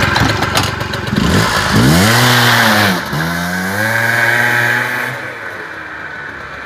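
A motorbike engine revs up hard and rides away, fading into the distance.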